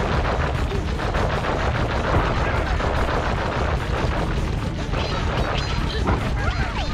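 Lively game music plays throughout.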